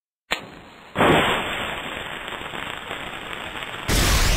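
A match strikes and flares.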